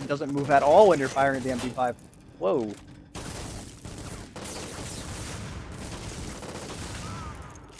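A gun fires bursts.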